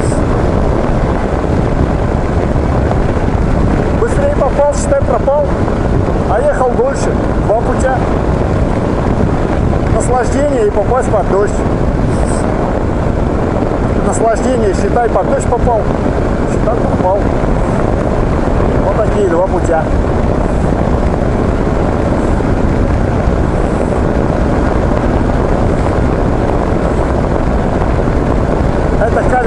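Wind rushes loudly and roars past.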